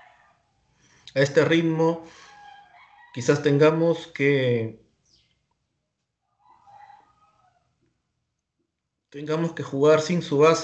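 A man speaks with animation through a microphone, close by.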